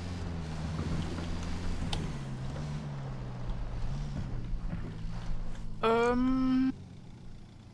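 An engine rumbles as a vehicle drives over rough ground.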